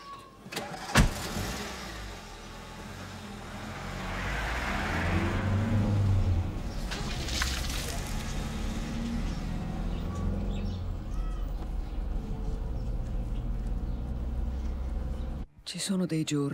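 A car engine runs and pulls away.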